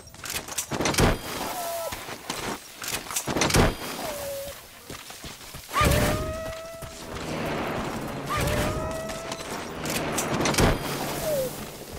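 A body is yanked into the air with a sharp whoosh.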